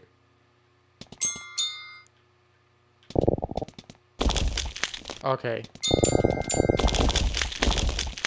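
Bright electronic chimes ring out.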